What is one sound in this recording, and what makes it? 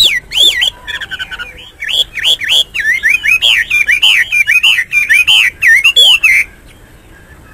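A songbird sings a loud, rapid series of whistling, warbling notes close by.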